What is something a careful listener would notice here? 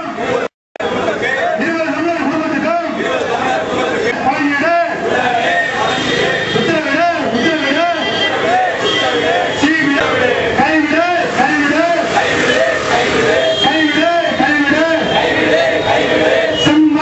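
A man leads the chant, shouting through a microphone and loudspeaker.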